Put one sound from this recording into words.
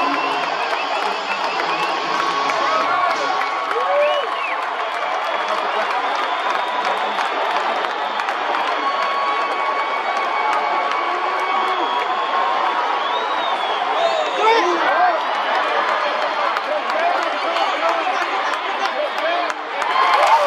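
Fans in a stadium crowd whistle and call out.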